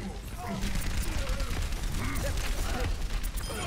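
An electric weapon crackles and zaps in rapid bursts.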